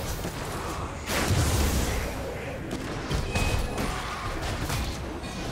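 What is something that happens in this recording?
Game spell effects whoosh and crash during a fast fight.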